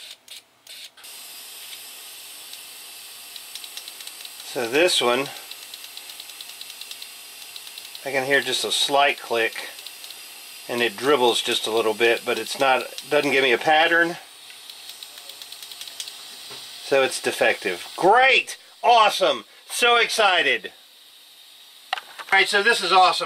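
Fluid sprays with a steady hiss.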